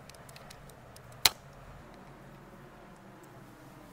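A hair clip snaps shut with a sharp click.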